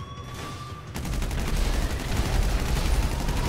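A gun fires in rapid bursts, loud and close.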